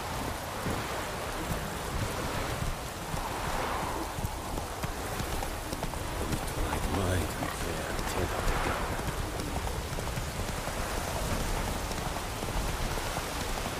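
Horse hooves clop on a dirt path.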